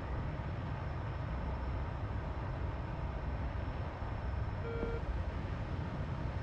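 A jet engine rumbles low and steadily.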